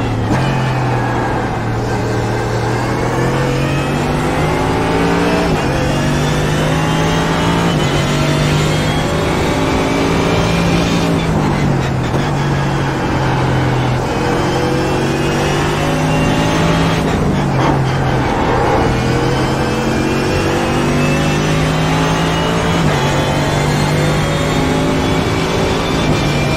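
A race car engine roars loudly, rising in pitch as it accelerates and dropping with each gear change.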